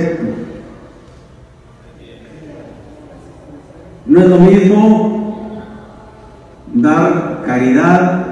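A man speaks forcefully through a microphone and loudspeakers, in a large echoing hall.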